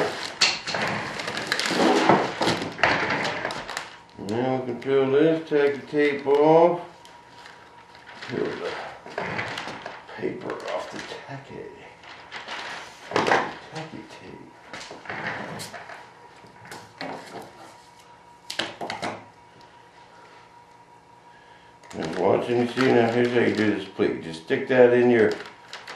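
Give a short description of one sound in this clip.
Plastic sheeting crinkles and rustles as it is handled.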